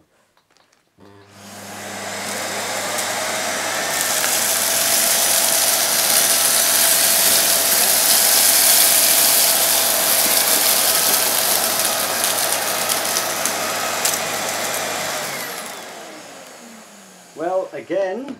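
A vacuum cleaner roars loudly, then winds down.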